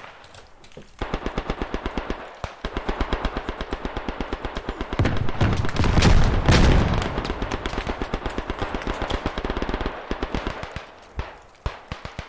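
Footsteps run quickly over dirt.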